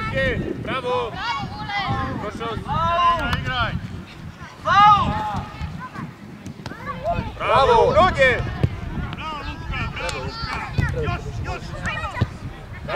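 Boys shout and call to each other outdoors.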